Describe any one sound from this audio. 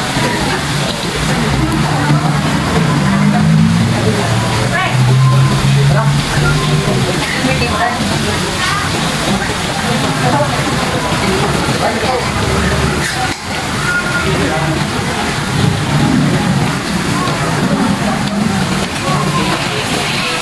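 Metal utensils clink against bowls.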